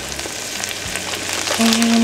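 Dry grains pour into a pot of water.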